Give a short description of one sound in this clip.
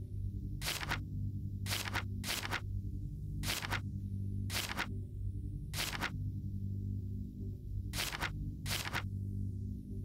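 Short swishing menu sounds play as items are selected, one after another.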